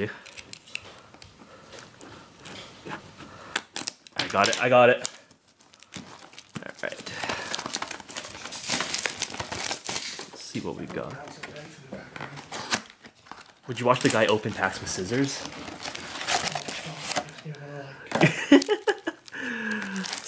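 Plastic wrapping crinkles and rustles as hands tear it off.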